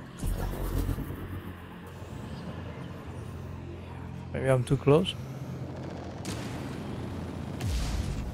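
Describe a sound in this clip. A spaceship engine hums steadily with a low drone.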